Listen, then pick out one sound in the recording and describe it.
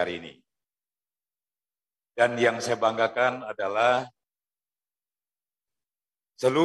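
A man speaks formally into a microphone, heard through loudspeakers in a large hall.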